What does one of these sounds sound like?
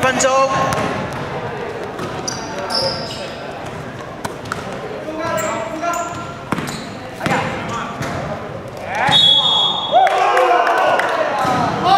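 Young men call out to each other across a large echoing hall.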